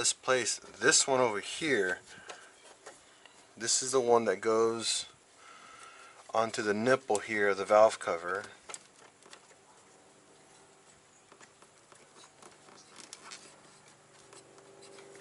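Small metal and plastic parts click and rattle.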